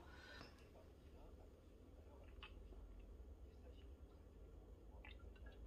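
A woman gulps a drink from a can.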